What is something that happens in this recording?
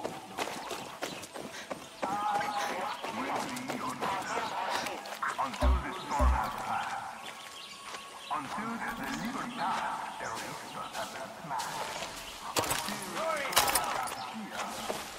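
Footsteps crunch on a dirt road.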